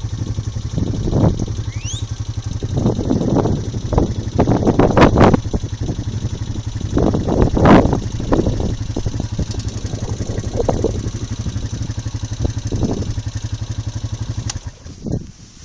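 A quad bike engine idles with a steady throb close by.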